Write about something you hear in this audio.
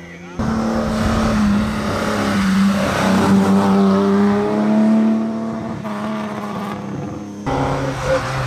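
A rally car engine roars loudly as it speeds past close by.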